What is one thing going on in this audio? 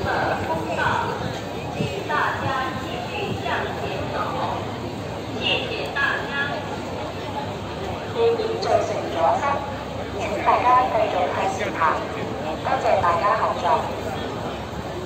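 Men and women talk nearby with animation.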